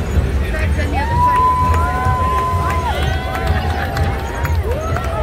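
Women whoop and cheer loudly.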